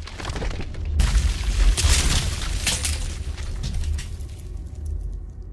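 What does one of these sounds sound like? Heavy stone slabs crash and shatter with a deep rumble.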